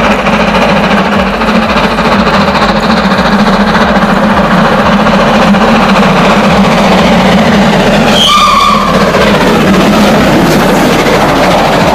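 A steam locomotive chuffs heavily as it approaches.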